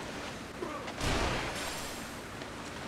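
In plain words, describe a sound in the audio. Water splashes loudly as a motorboat crashes through waves.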